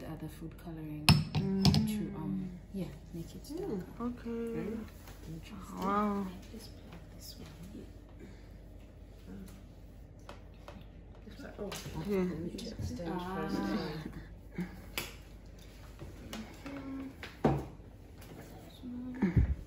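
A young woman talks casually nearby.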